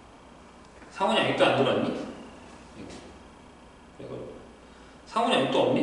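A man speaks calmly and clearly into a microphone close by.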